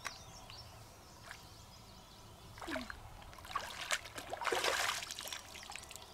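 Water splashes as hands scoop in a shallow stream.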